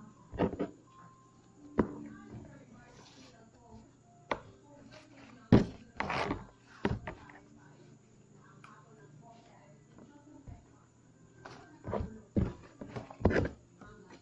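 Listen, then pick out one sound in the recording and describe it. Leaves slap and thump against a table.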